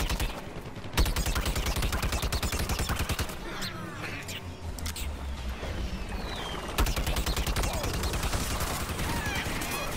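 A blaster fires rapid shots in quick bursts.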